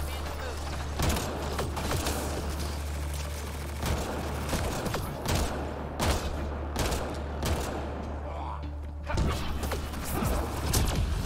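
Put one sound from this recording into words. Gunshots and blasts ring out in bursts.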